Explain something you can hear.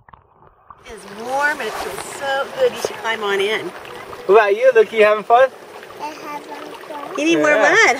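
A young boy talks and squeals excitedly close by.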